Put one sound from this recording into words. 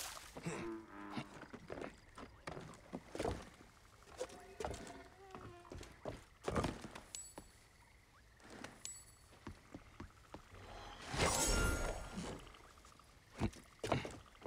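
Footsteps thud and creak on wooden planks.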